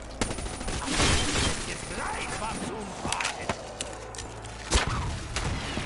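Gunfire bursts out in short loud volleys.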